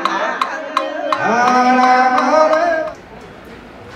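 An elderly man chants steadily into a microphone.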